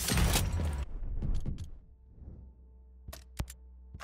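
Menu clicks and beeps sound.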